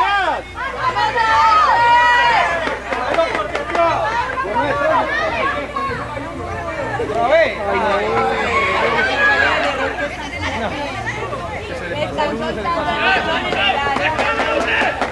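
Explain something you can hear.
A crowd of children and adults shouts and cheers outdoors.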